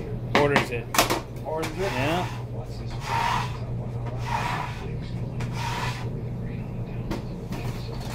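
A knife chops on a cutting board.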